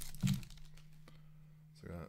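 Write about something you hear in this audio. Cards slide and shuffle between fingers.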